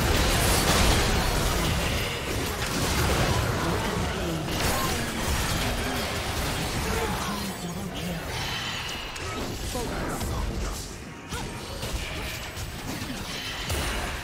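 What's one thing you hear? Magic blasts crackle and burst in a fast video game battle.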